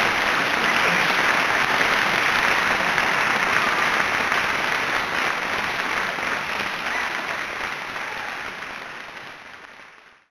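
A large crowd applauds loudly in a big echoing hall and the applause slowly fades away.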